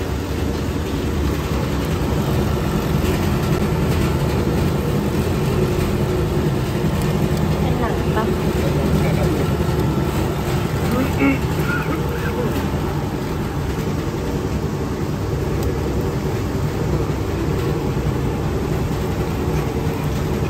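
A machine motor hums and rumbles steadily.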